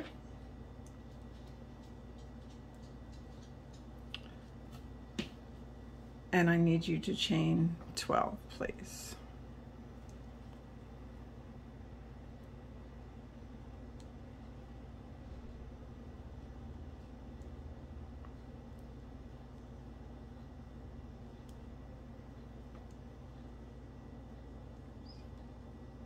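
A crochet hook softly ticks and rustles through yarn.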